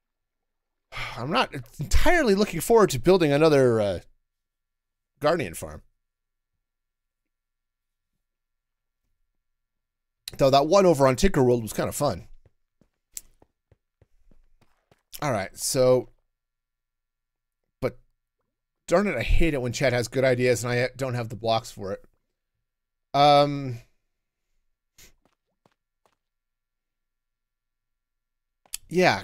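A middle-aged man talks with animation into a close microphone, in bursts with pauses.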